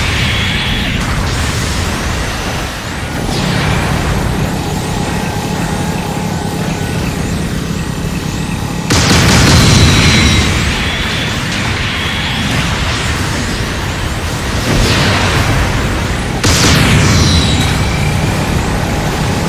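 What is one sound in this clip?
Beam weapons fire with sharp, bright zaps.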